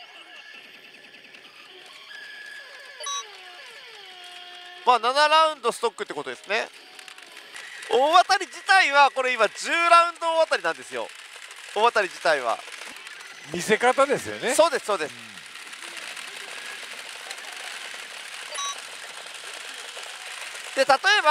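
A pachinko machine plays electronic tones and jingles.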